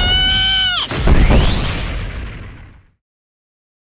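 A loud explosion booms and rumbles away into silence.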